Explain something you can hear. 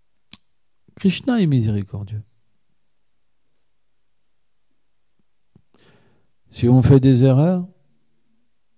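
A man speaks calmly into a microphone in short phrases, with long pauses.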